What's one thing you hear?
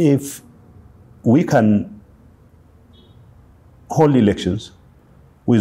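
A man speaks calmly in short phrases close to a microphone.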